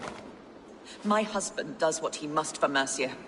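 A woman speaks earnestly and with feeling.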